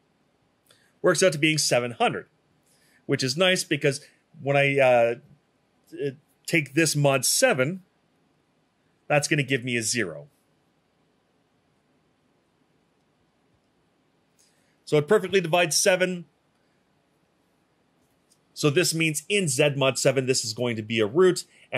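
A man speaks calmly and clearly, close to a microphone.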